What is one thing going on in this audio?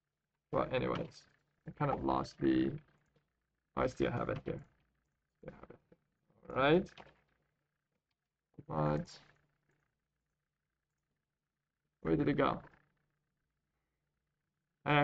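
A man speaks calmly and close to a microphone, in short phrases.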